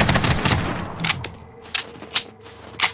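Single gunshots crack sharply.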